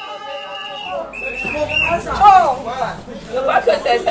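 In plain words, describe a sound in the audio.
Women cheer and ululate loudly with excitement.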